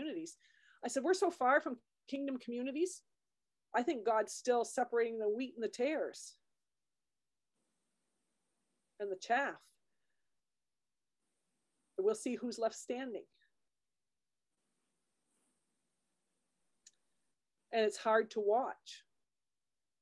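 A middle-aged woman speaks calmly into a microphone, heard as if over an online call, pausing often.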